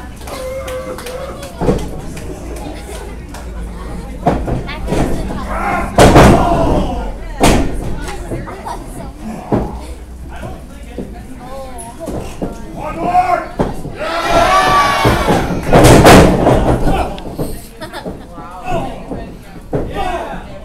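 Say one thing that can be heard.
A crowd of spectators cheers and shouts in an echoing hall.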